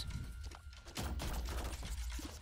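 Video game sound effects pop and splatter.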